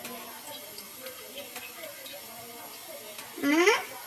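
Oil trickles into a metal pot.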